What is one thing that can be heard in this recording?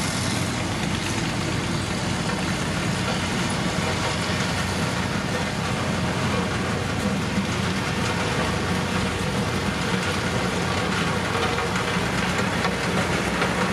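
A road roller's diesel engine rumbles steadily as it rolls closer.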